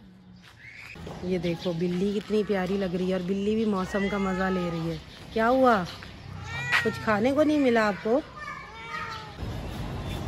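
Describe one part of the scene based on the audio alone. A cat meows loudly and repeatedly close by.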